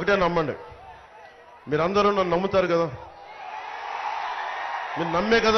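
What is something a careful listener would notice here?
A man shouts loudly through a loudspeaker to a crowd.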